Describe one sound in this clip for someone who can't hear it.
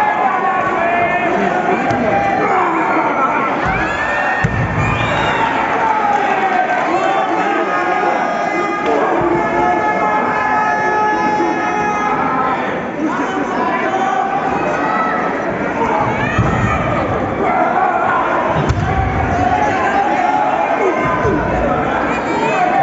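A crowd of spectators shouts and cheers in a large indoor arena.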